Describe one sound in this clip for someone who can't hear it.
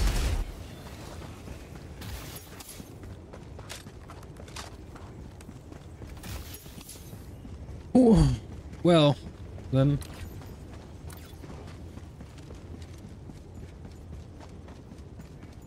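Footsteps crunch on snow and ice.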